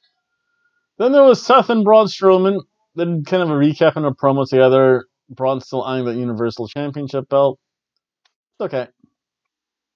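A middle-aged man talks with animation into a nearby microphone.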